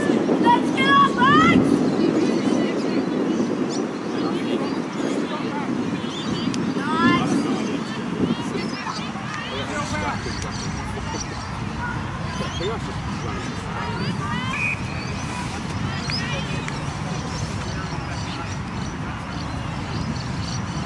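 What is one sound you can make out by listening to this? Young women shout to each other in the distance.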